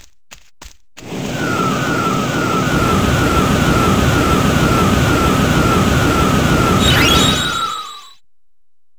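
An energy charge hums and crackles with a rising whine.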